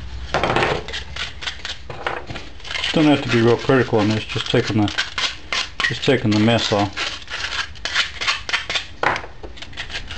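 Plastic pipe fittings knock and click as they are pushed together by hand.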